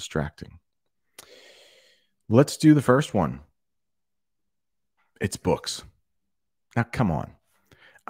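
A man speaks calmly and close into a microphone, in bursts with pauses.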